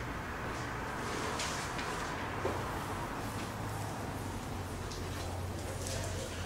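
An eraser rubs across a board.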